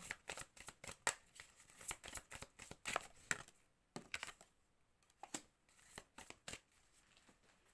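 Playing cards riffle and flick as they are shuffled by hand.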